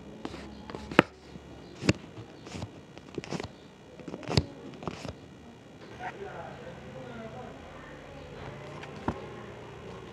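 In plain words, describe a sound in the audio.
Paper pieces tap and click against a card.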